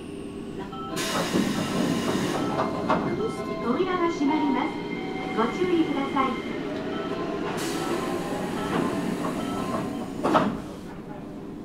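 A passing train rumbles and clatters along the tracks, then fades away.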